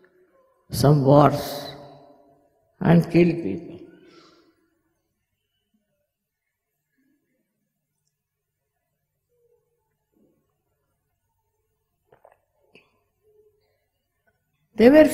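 An elderly woman speaks calmly into a microphone, with long pauses.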